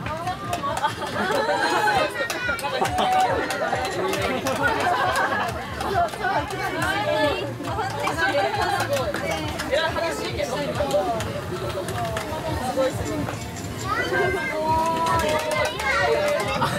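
A crowd of adults and children chatter and call out nearby outdoors.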